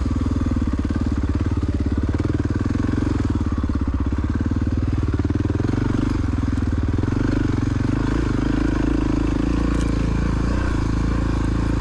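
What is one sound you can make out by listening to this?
A dirt bike engine buzzes loudly and steadily, close by.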